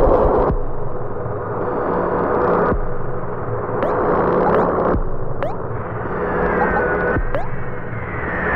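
Steady game music plays.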